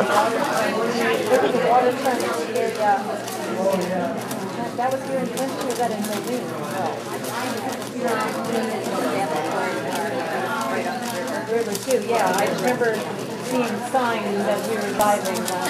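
A puzzle cube clicks rapidly as it is turned.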